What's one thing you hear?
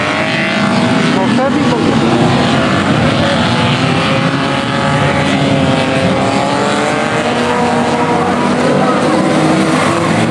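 Several car engines roar and rev loudly nearby.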